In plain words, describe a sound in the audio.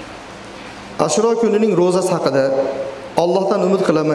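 A man chants in a melodic voice through a microphone.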